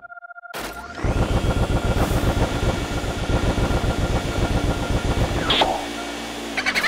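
A vacuum cleaner whirs and rattles loudly.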